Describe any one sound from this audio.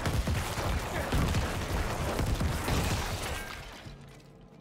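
Weapons clash and monsters shriek in a loud battle.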